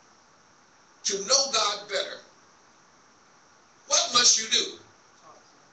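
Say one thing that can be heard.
A man speaks forcefully into a microphone in a large echoing hall, in short bursts with pauses.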